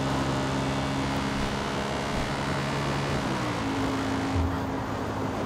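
Tyres roll over a paved road.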